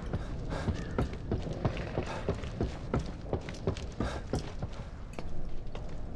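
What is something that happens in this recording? Footsteps clatter on metal stairs.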